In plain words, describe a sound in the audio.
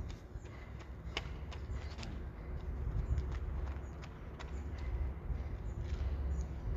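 Running footsteps slap on concrete.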